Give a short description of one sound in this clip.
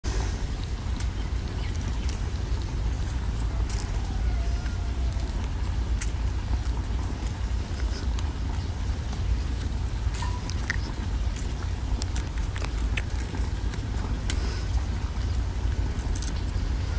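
Fingers peel the skin from a ripe peach by hand.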